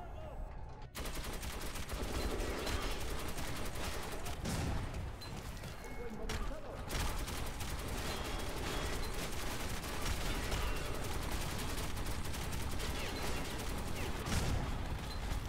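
A gun fires loudly in bursts.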